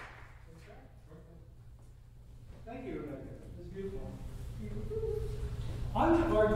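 A pipe organ plays in a large echoing hall.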